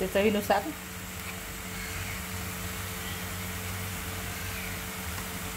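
Food sizzles softly in a hot pan.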